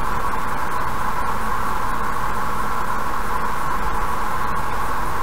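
A car drives steadily along a highway, tyres rumbling on the road.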